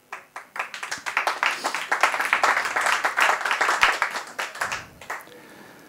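A crowd claps nearby.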